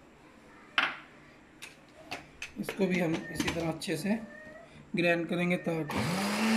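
A plastic blender lid clicks and knocks into place.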